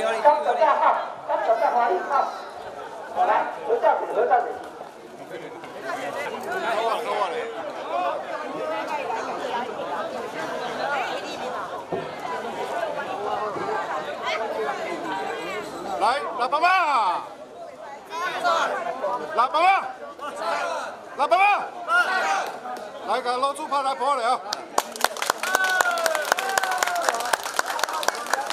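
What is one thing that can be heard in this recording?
Several men and women talk and laugh together nearby.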